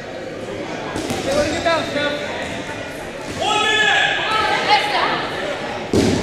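Young girls shout and call out to each other in a large echoing gym.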